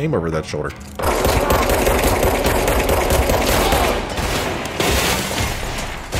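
Rapid gunshots fire at close range.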